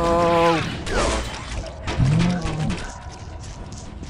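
An energy blast fires with a fiery whoosh.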